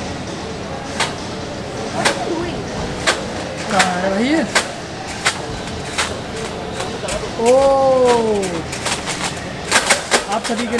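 Plastic pins click and rattle as they are pushed through a board.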